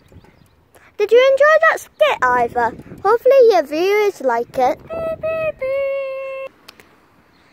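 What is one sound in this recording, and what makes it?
A young boy sings loudly in a wavering voice close by.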